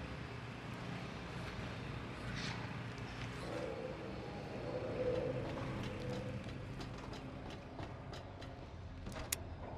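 Footsteps scrape on a hard floor.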